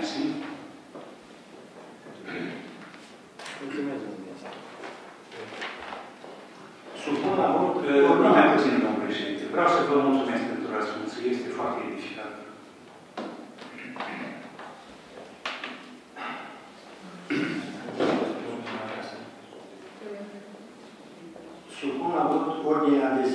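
An elderly man speaks into a microphone, reading out calmly in a room with a slight echo.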